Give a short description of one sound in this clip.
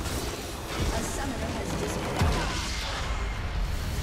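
A video game structure bursts with a deep explosion.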